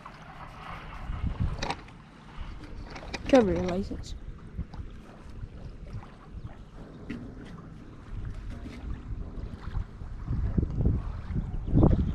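Water laps gently against a dock.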